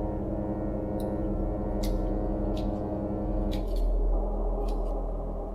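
Footsteps tread across a floor.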